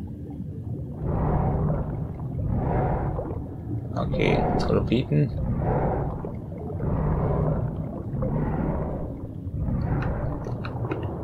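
Water surges and swooshes in slow, regular pulses as a large creature swims.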